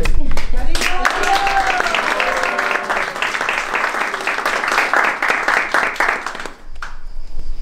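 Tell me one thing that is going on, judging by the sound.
A harmonium plays.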